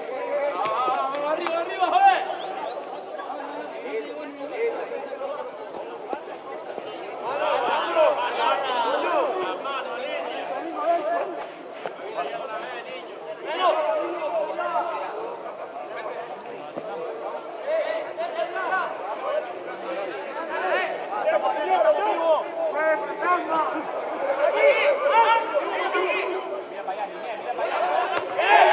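Football players call out to each other across an open field in the distance.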